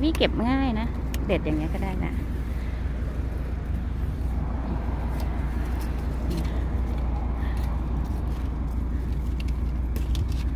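Leaves rustle as they are brushed aside.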